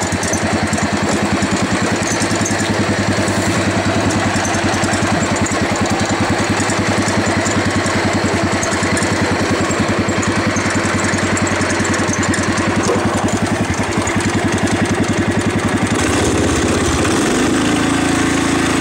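A riding mower's engine chugs steadily close by, its pitch shifting near the end.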